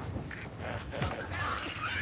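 Flames crackle and burst.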